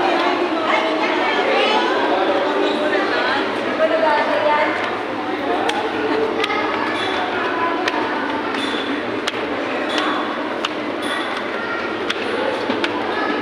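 Footsteps shuffle and tap on stone stairs.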